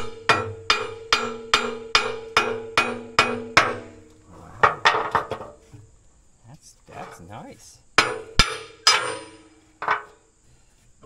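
A hammer strikes metal in quick, ringing blows.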